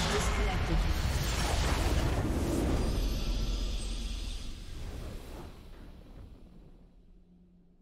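A game's nexus explodes with a deep rumbling blast.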